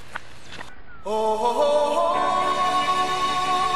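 A teenage boy sings loudly close by.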